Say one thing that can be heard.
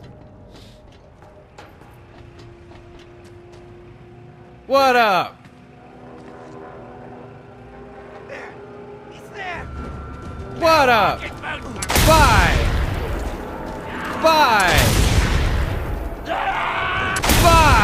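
A young man talks excitedly into a close microphone, sometimes shouting.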